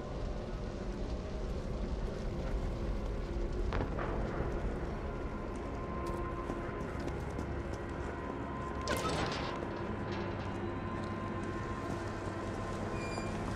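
Footsteps scuff over debris.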